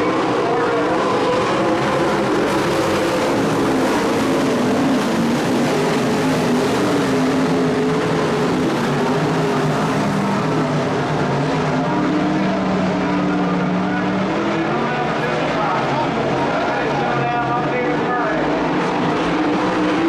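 Race car engines roar loudly around a dirt track, rising and falling as the cars pass.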